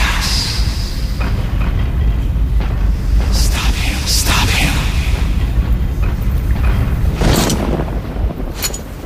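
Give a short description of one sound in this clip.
Stone blocks rumble and crash as a wall collapses.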